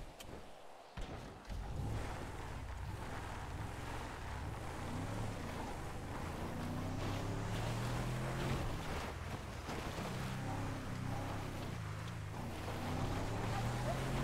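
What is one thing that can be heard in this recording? A truck engine rumbles and revs while driving over rough ground.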